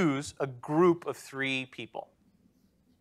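A man speaks clearly into a nearby microphone, explaining calmly.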